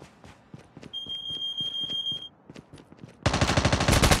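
Footsteps crunch quickly over gravel.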